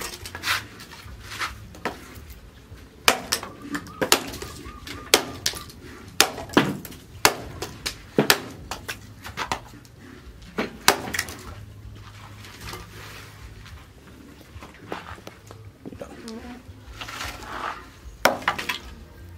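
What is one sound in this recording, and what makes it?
An axe chops and splits wood with sharp knocks.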